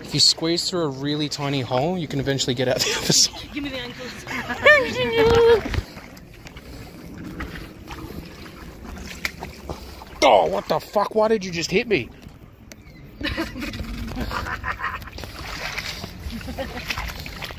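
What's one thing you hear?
A shallow stream trickles gently over stones.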